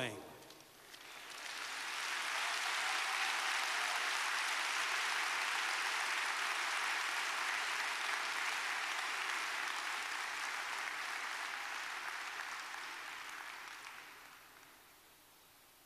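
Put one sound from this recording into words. A large crowd applauds steadily in a big hall, then the clapping fades away.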